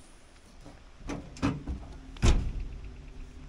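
A truck's rear hatch and tailgate knock and clunk open.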